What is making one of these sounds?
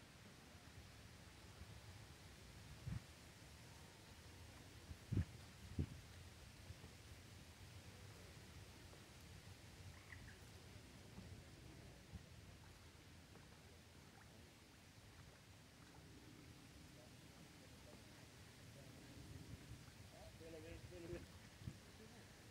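A light wind blows outdoors.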